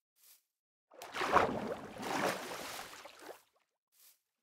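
Water splashes as a video game character wades out of it.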